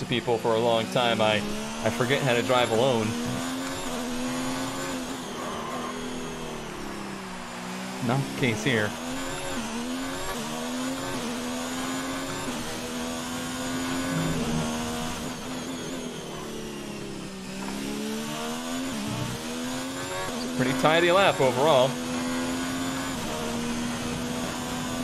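A racing car engine roars and whines, rising and falling in pitch as gears change.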